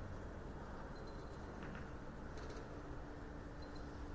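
Pool balls knock together.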